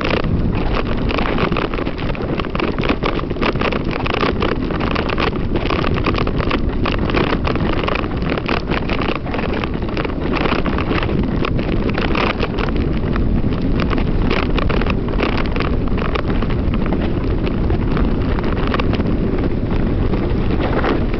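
Wind rushes loudly past as a bicycle speeds downhill.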